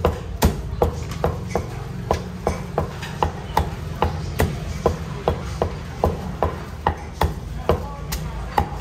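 A cleaver chops rapidly on a wooden board with sharp thuds.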